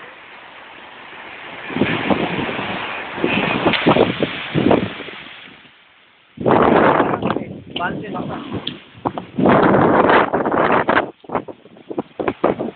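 Small waves wash and hiss onto a sandy shore.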